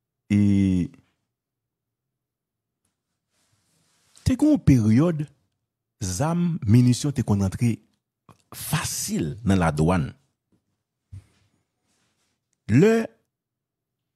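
A man speaks close into a microphone in short bursts.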